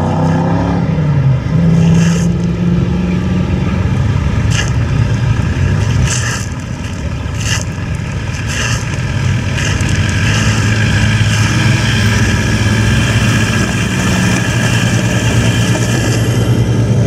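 An off-road vehicle engine rumbles as it drives slowly past.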